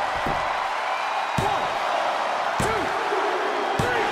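A referee slaps the mat with a hand.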